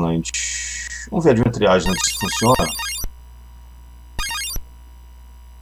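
A video game menu beeps.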